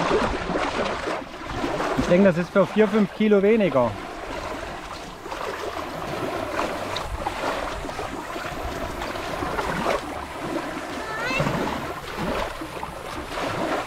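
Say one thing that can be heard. Water laps and splashes around a small child wading.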